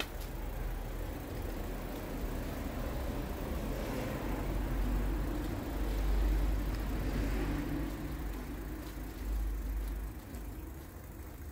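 A car drives past nearby, rising and then fading.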